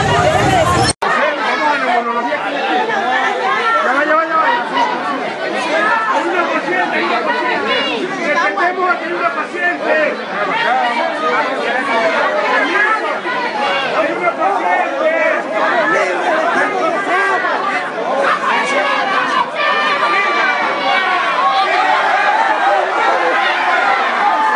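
A crowd shouts and clamours in a jostling throng.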